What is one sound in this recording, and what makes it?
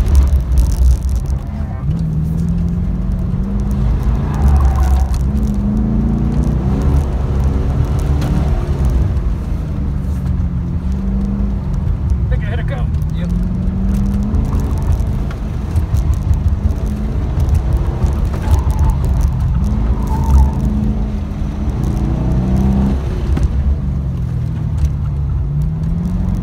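A car engine revs up and down, heard from inside the car.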